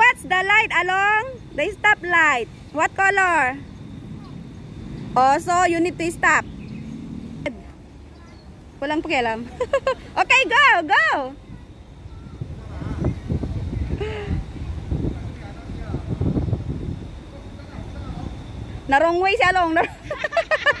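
A young child speaks in high, excited bursts close by.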